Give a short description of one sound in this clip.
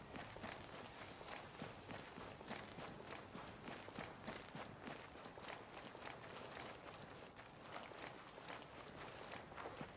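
Boots crunch softly on gravel.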